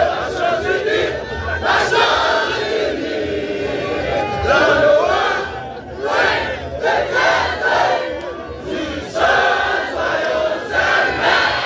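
A large crowd of young men and women chants and sings loudly together outdoors.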